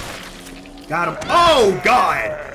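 A man shouts in alarm close to a microphone.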